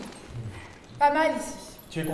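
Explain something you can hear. A young woman speaks with feeling close by.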